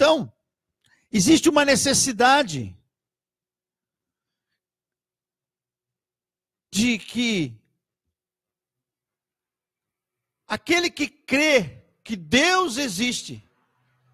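A middle-aged man speaks with animation into a close microphone, pausing often.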